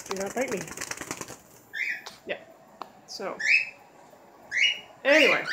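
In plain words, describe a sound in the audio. Cockatiels chirp and whistle loudly close by.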